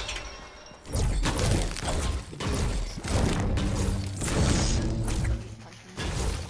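A pickaxe strikes rock again and again with sharp cracks.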